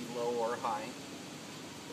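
A middle-aged man speaks briefly and calmly nearby.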